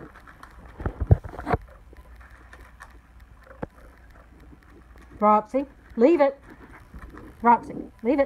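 A dog eats noisily from a bowl, crunching its food.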